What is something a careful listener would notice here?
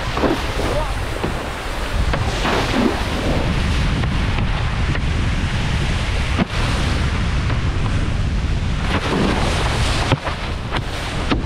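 Wind rushes loudly, buffeting the microphone.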